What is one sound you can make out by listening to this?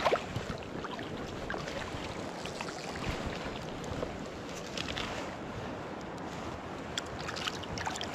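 Water splashes as a net is dipped into a river.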